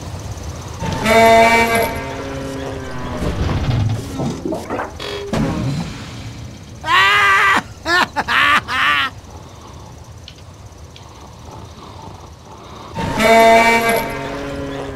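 A tractor lets out a loud honking squeal as it tips over.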